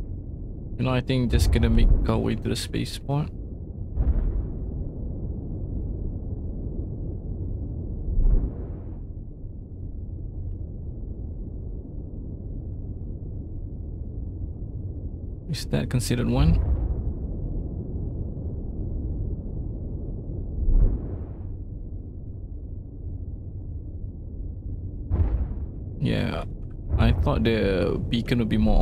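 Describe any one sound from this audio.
A spaceship engine rumbles low and steadily.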